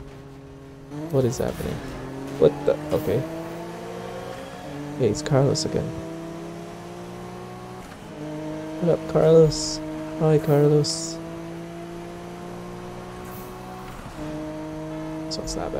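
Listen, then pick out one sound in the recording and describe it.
A racing car engine revs and roars as it accelerates.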